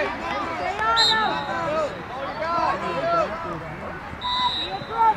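A referee blows a short, sharp whistle.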